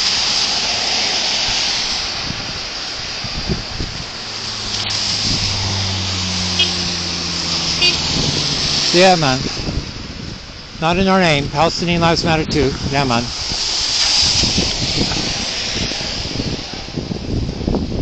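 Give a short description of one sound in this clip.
Car tyres hiss past on a wet road.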